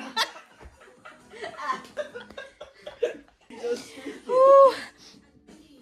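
Two young women laugh loudly and shriek close by.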